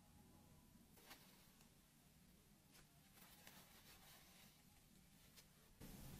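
A paper tissue rustles softly against a tube.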